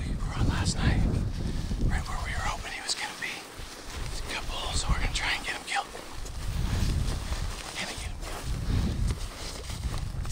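A backpack's straps and fabric rustle as a man walks.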